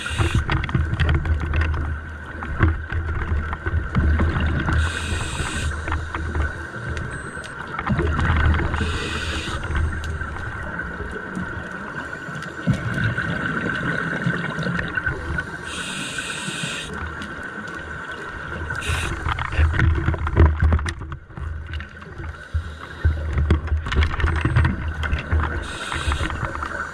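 Air bubbles gurgle loudly from a nearby diver's regulator in repeated bursts.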